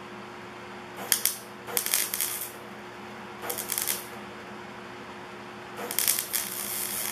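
A welder crackles and sizzles in short bursts.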